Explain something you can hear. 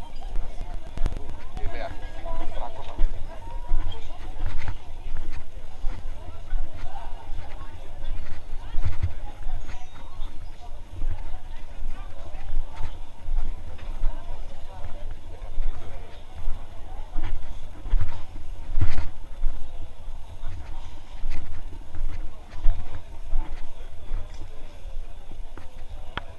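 A crowd of people chatters around outdoors.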